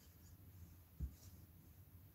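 A small tool taps down on a table.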